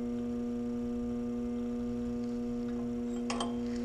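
Metal parts clink softly as a hand works on a brake.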